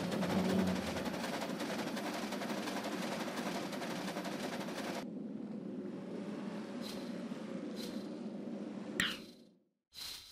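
A train rumbles steadily across a metal bridge.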